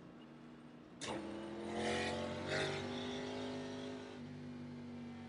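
A race car engine revs up louder.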